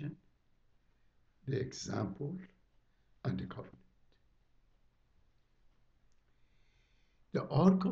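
An elderly man speaks calmly into a microphone, pausing between phrases.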